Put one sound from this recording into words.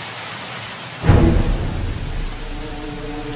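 Flames burst up with a loud whoosh.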